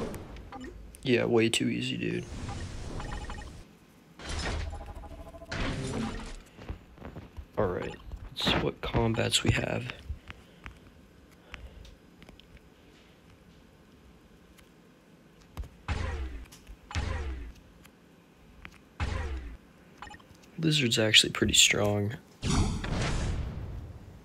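Short menu sounds chime and swoosh.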